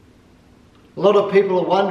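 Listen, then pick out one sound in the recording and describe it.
A middle-aged man speaks clearly and calmly close by.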